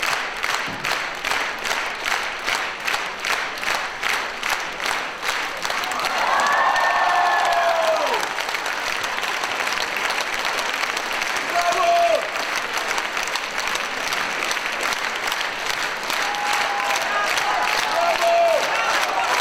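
A large audience claps in unison, then breaks into loud, steady applause in a big hall.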